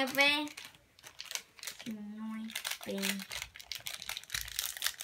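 A plastic wrapper crinkles and rustles.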